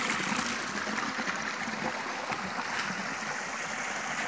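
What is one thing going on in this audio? Water trickles gently along a stone channel.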